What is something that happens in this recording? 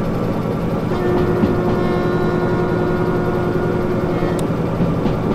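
A locomotive horn sounds briefly.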